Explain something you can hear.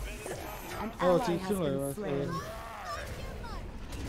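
Magic spells burst and crackle in quick succession.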